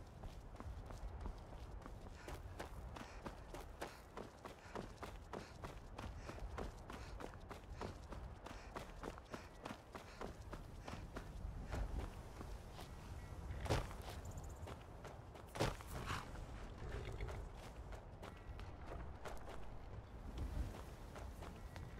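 Footsteps tread steadily on a stone path.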